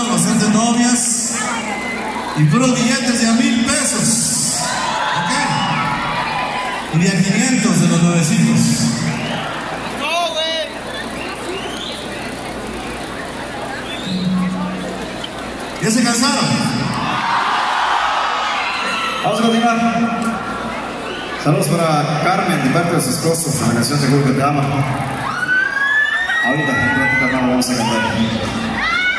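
A crowd chatters and cheers nearby.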